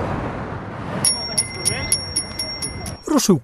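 A bicycle's freewheel ticks as it rolls past.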